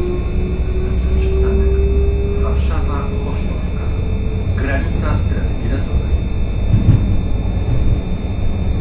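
Train wheels clatter over rail joints and switches.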